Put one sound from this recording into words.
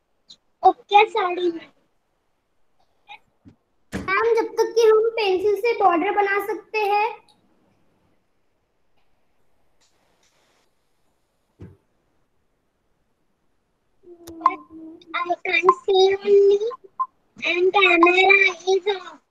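A young girl talks with animation through an online call.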